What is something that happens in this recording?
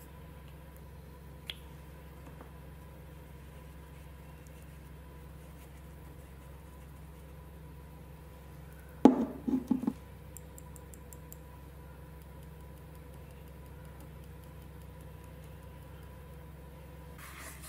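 A brush swishes softly over paper.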